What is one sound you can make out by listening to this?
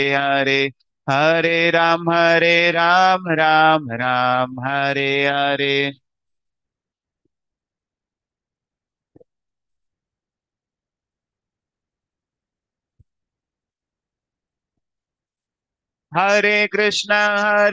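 A man sings a drawn-out melody into a close microphone, heard over an online call.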